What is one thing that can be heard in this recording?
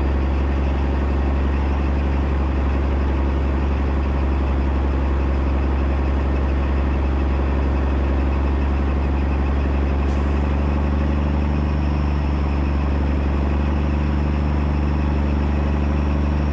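A truck engine rumbles loudly and steadily close by.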